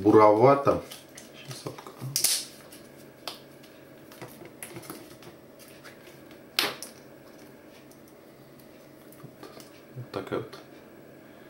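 A plastic lid twists and clicks on a small jar.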